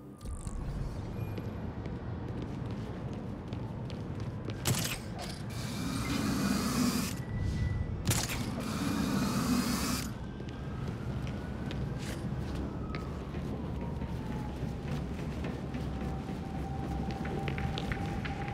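Footsteps thud on a rooftop as a figure runs.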